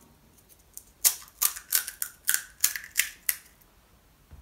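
Crisp hollow puffs crack as fingers poke into them.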